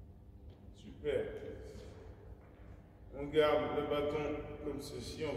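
A man speaks out loud in an echoing hall.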